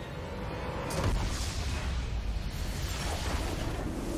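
A loud magical explosion booms and crackles.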